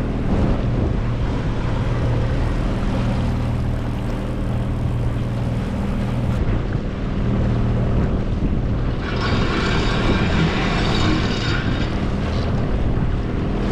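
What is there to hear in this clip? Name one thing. Water splashes and rushes along a boat's hull.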